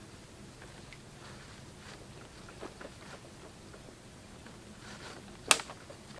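A rope rubs against wooden branches as it is pulled tight.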